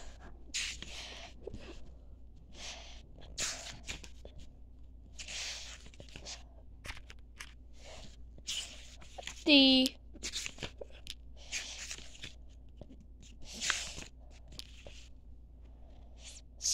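Paper pages rustle and swish as they are turned.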